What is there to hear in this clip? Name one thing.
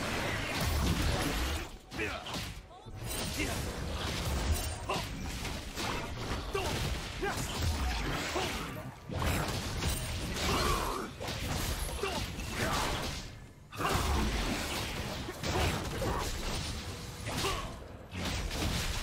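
Game spells and attacks crackle and boom in quick bursts.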